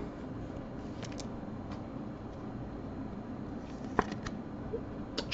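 Plastic card cases click and tap lightly against each other.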